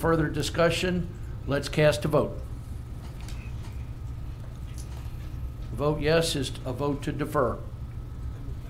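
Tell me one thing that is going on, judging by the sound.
A man speaks calmly into a microphone, pausing between short phrases.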